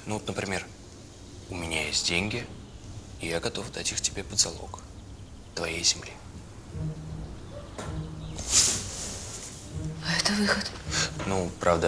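A young woman answers softly.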